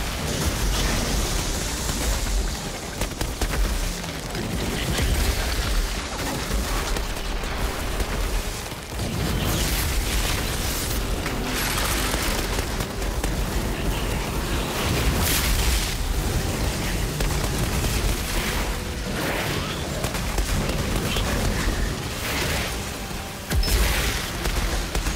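Heavy blows thud and crash.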